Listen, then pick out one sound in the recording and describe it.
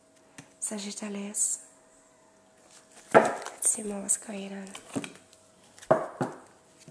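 Cards shuffle and tap together.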